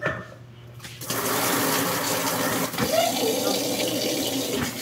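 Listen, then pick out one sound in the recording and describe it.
Water pours from a tap and splashes into a tub of water.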